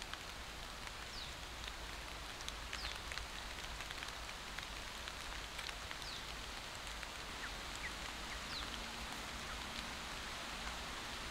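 A chicken's feet rustle and crunch through dry leaves.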